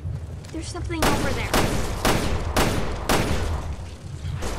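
Pistol shots ring out several times in quick succession.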